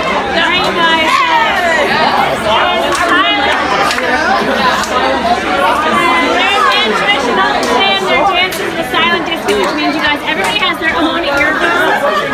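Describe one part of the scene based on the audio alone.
A crowd of men and women talks and shouts loudly all around.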